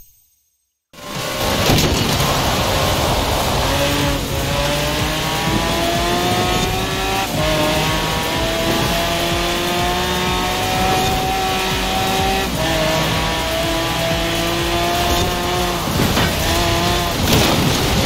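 A sports car engine roars loudly, rising in pitch as it speeds up and dropping with each gear change.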